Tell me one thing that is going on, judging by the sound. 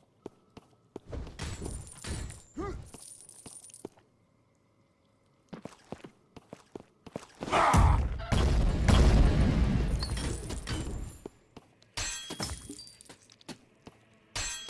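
Game magic blasts whoosh and crackle in a fight.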